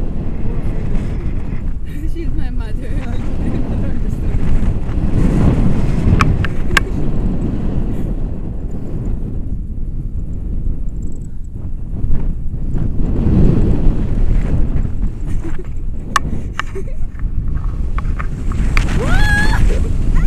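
Wind rushes and buffets loudly against a microphone.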